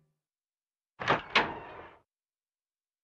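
A door creaks slowly open.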